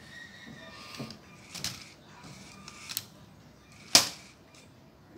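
Plastic parts click and clack as a toy arm swings down.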